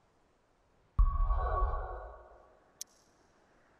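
A whooshing swell sounds as a map opens.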